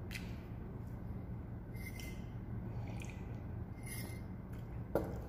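A man slurps a drink from a cup.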